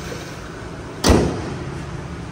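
A car bonnet slams shut with a loud thud.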